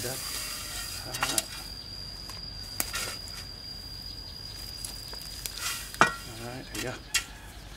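A shovel scrapes and digs into dry soil.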